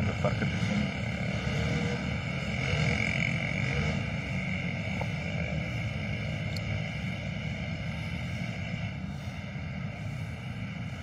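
Wind blows steadily outdoors, rumbling and gusting.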